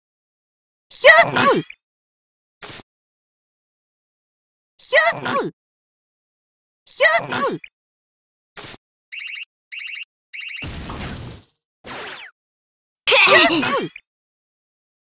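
Game attack sounds burst out in short, sharp blasts.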